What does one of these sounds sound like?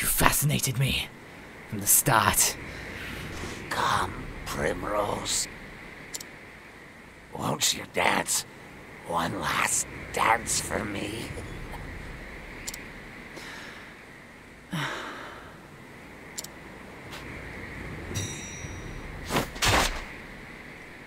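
A man talks animatedly close to a microphone.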